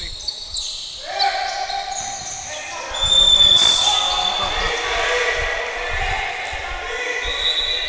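Men shout and call out to each other across an echoing hall.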